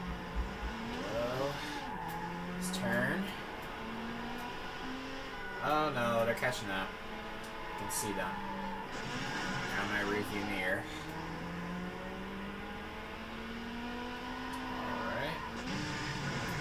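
Tyres screech around corners.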